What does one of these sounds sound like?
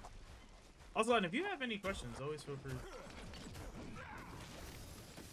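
Metal weapons clang and strike in a fight.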